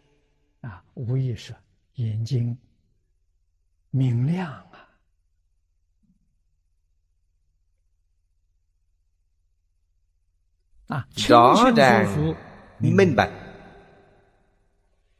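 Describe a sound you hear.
An elderly man speaks calmly and slowly into a nearby microphone, with long pauses.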